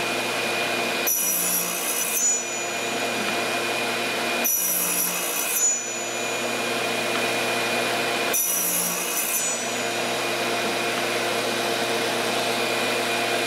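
A motor hums steadily.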